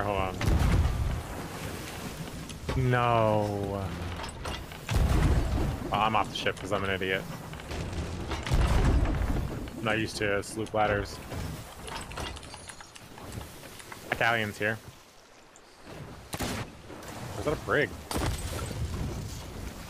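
Cannons boom and explode.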